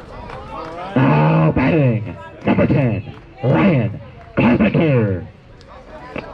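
Young spectators cheer loudly in long drawn-out chants.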